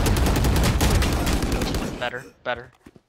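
An automatic rifle fires a rapid burst.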